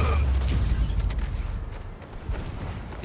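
Heavy punches thud in a brawl.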